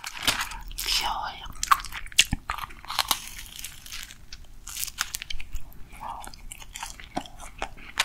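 A young woman bites and chews a crisp wafer pastry close to a microphone.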